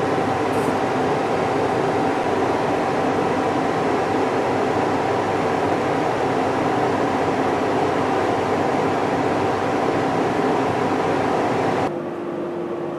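A gas torch roars steadily with a loud hissing flame.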